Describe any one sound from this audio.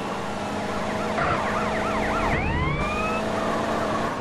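Car tyres screech on tarmac.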